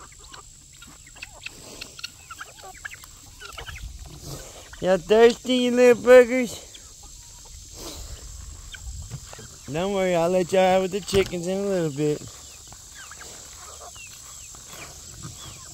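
Chickens cluck and peep softly outdoors.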